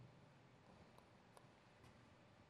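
A table tennis ball bounces with light, sharp clicks.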